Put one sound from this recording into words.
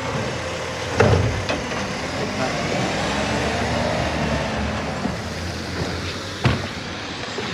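A wheelie bin bangs against a truck.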